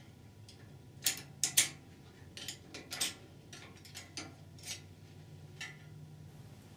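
Metal parts clink and tap against a transmission clutch drum.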